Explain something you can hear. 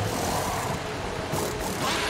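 Pneumatic wheel guns whirr briefly.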